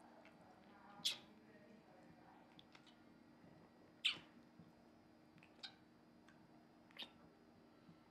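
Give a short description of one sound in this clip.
Two men kiss, lips smacking wetly now and then.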